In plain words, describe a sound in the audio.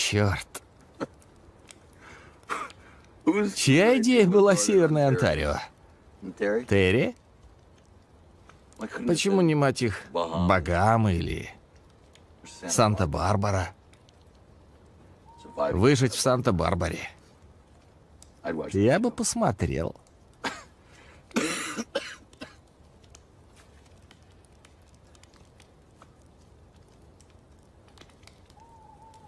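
A small campfire crackles softly.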